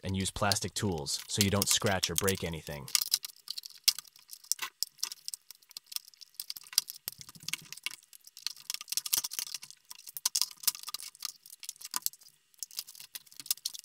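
Plastic parts click and rattle as a laptop casing is handled.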